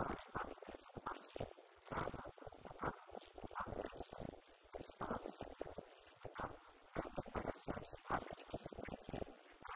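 A man speaks calmly into a microphone, heard through loudspeakers in a room.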